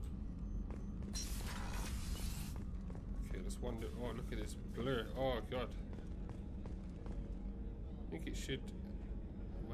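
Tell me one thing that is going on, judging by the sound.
Footsteps walk across a metal floor.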